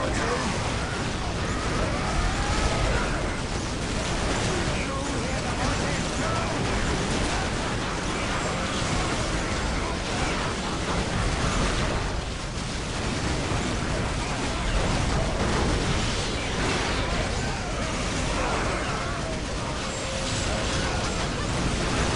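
Laser blasts zap and crackle.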